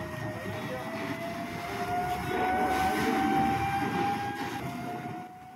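A fire roars and hisses.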